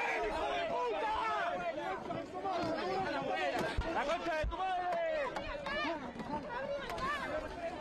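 People jostle and shove against plastic shields with dull knocks.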